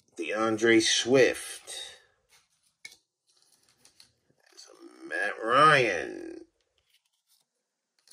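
Cardboard trading cards slide and rustle against each other in someone's hands, up close.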